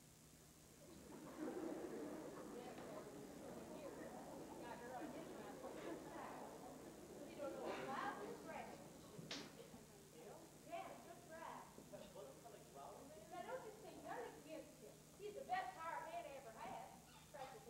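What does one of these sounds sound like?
A man speaks on a stage, heard from a distance in a large hall.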